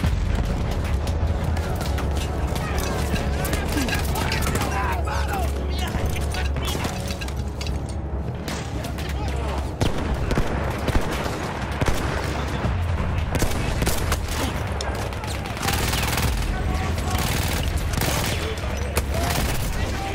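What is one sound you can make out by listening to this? Rifle shots crack sharply, again and again.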